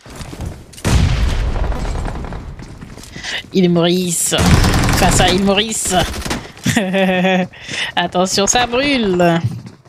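Gunshots from a video game crack in quick bursts.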